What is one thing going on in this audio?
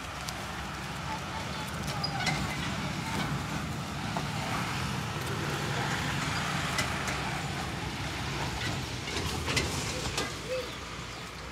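A truck engine rumbles in the distance.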